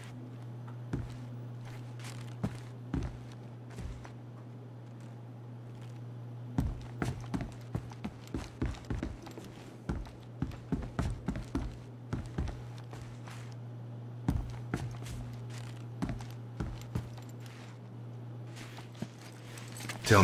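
Footsteps tread across a hard floor indoors.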